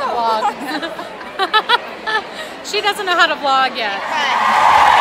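Young women laugh loudly close by.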